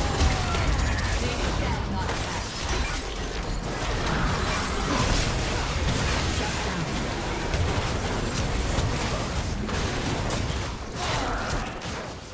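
Magic blasts and clashing combat effects of a video game battle crackle and boom.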